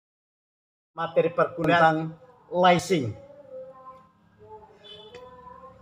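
An elderly man speaks warmly and close to the microphone.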